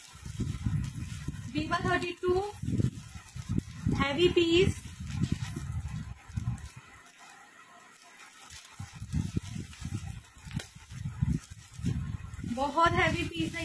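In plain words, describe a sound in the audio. Plastic wrapping crinkles and rustles as it is handled.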